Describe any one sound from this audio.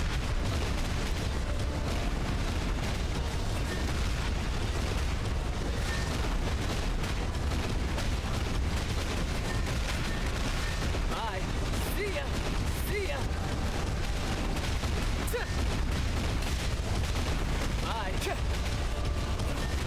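Rapid magical blasts and impacts crackle continuously.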